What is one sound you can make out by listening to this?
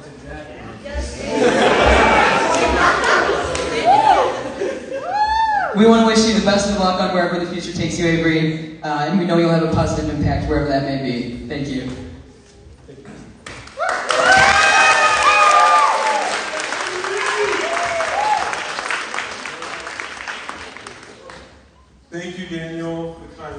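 A group of young men sings together without instruments in an echoing hall.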